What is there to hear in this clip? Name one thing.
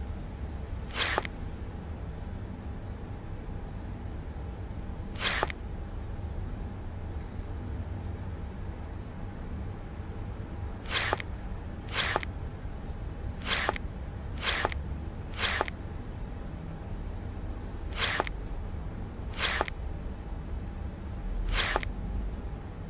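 Soft whooshing clicks sound now and then as game pieces slide into place.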